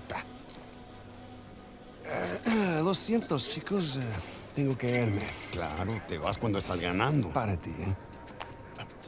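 Another man speaks gruffly.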